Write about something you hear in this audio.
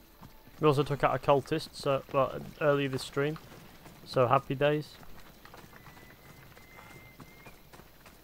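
Footsteps run across stone paving.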